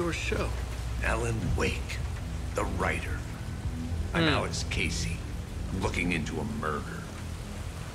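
A second man answers in a low, calm voice.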